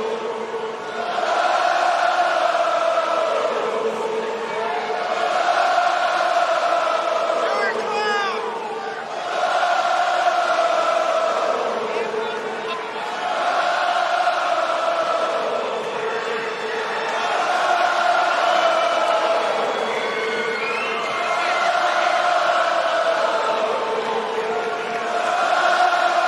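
A large crowd chants loudly in rising and falling waves in a big echoing arena.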